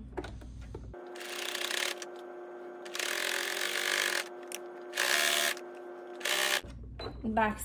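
A sewing machine whirs as it stitches.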